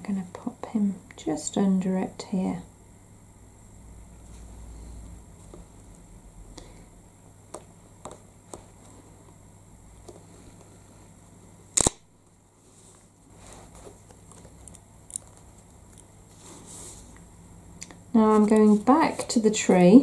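Paper rustles softly as hands press and shift a card.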